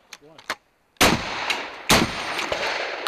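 Shotgun blasts ring out loudly outdoors.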